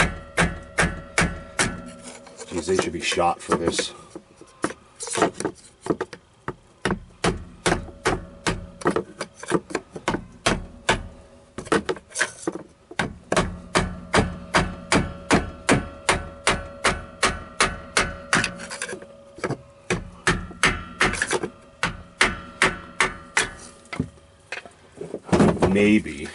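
An engine idles with a fast, steady ticking and clicking.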